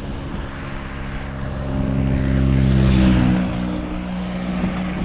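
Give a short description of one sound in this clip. A car drives by, swelling and then fading.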